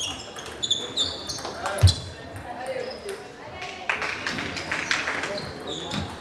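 Shoes squeak sharply on the floor.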